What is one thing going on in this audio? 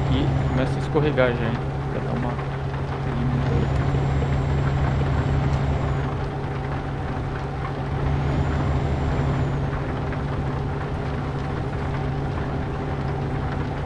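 A truck engine drones steadily while driving on a highway.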